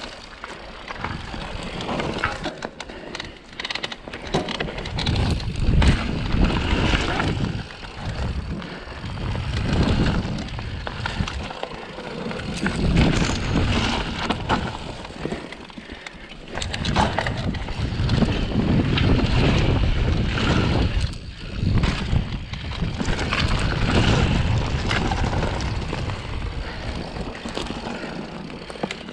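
Mountain bike tyres roll and crunch over a dirt trail.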